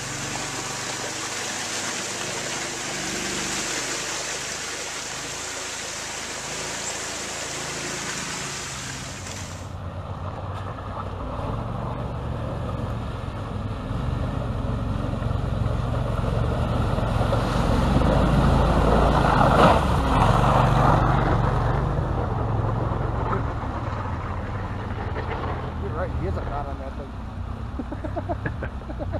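An engine rumbles and revs.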